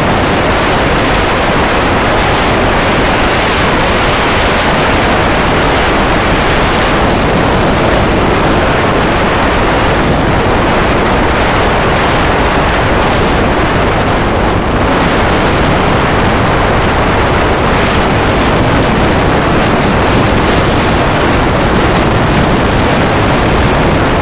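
Strong wind roars steadily over a microphone.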